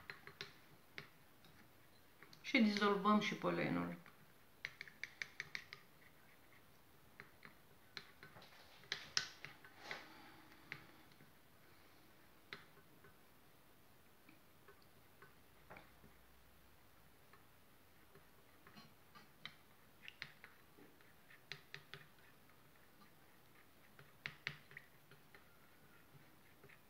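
A wooden stick stirs and clinks against a metal pot.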